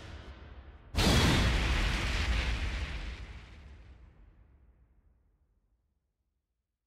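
A heavy boom hits and slowly rumbles away.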